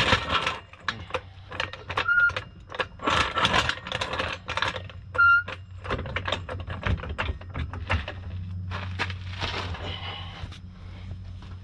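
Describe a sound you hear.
A floor jack clicks and knocks as it is pumped to lift a car.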